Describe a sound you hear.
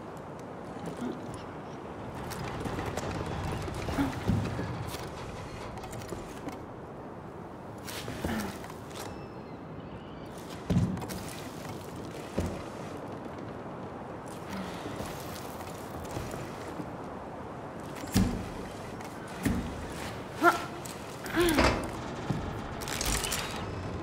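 Dull thuds sound as someone climbs a metal frame.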